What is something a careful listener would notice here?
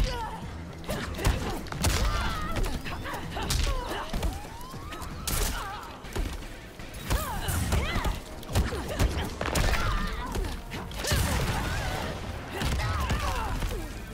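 Fighters grunt and shout as they attack.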